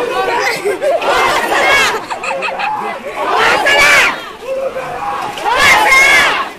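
A woman shouts loudly in a high voice.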